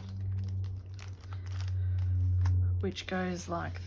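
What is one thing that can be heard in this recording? Paper banknotes rustle and crinkle as they are handled.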